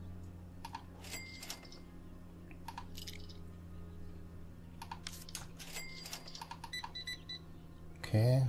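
Short electronic clicks and beeps sound from a cash register.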